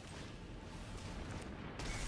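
A magical shimmering whoosh sweeps across.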